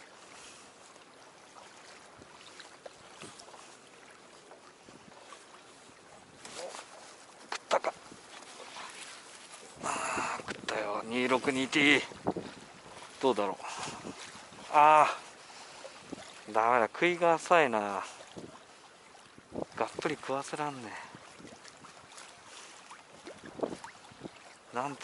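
Water splashes softly against the side of a boat.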